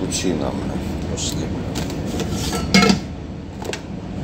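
A metal coffee pot clinks against a coffee machine.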